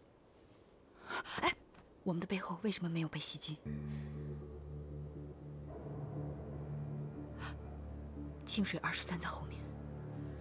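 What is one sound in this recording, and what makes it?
A young woman speaks in a hushed, worried voice, close by.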